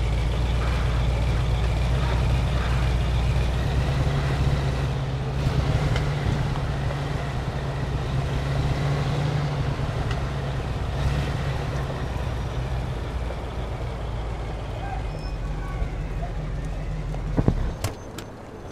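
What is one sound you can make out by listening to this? A car engine rumbles steadily as the car drives.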